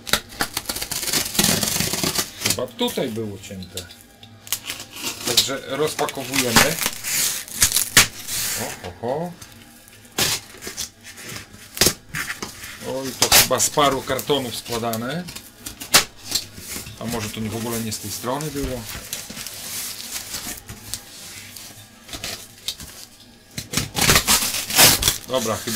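A cardboard box rustles and thumps as it is handled.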